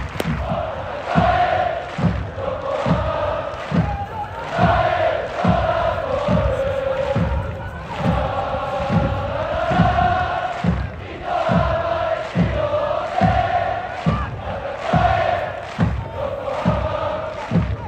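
A large stadium crowd chants loudly in unison.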